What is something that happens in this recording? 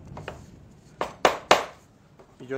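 Wooden pieces knock together.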